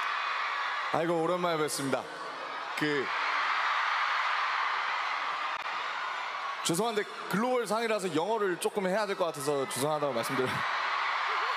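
A young man speaks cheerfully into a microphone over a loudspeaker.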